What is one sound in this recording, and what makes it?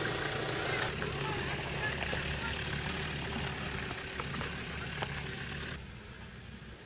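A vehicle engine rumbles in the distance.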